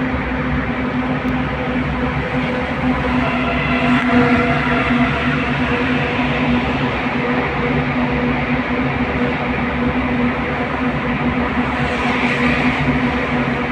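A car engine hums steadily as the car drives through an echoing tunnel.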